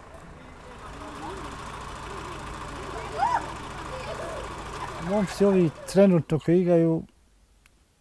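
Women and children talk nearby outdoors.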